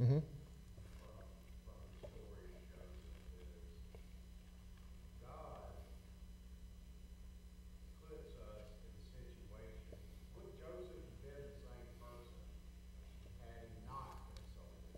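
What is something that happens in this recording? A man speaks calmly and slowly into a microphone, with pauses.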